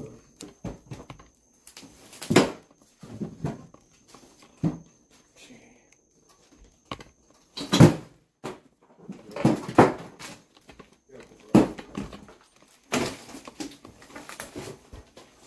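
Footsteps crunch over loose debris on a floor.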